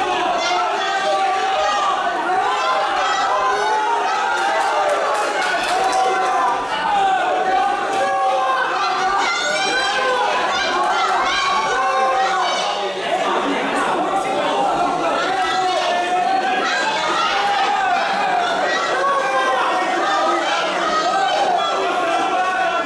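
A crowd shouts and cheers throughout in a large echoing hall.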